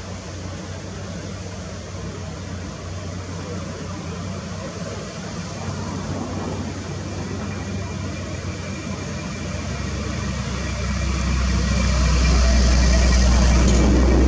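A heavy diesel excavator engine rumbles steadily and grows louder.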